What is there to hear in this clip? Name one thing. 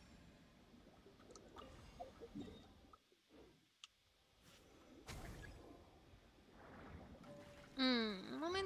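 Magical effects whoosh and chime in bursts.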